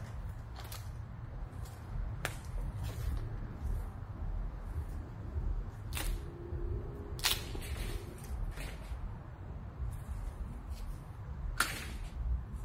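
Dry branches snap and crack as they are broken by hand.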